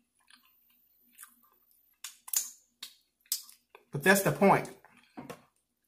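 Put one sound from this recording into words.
A man smacks his lips while eating.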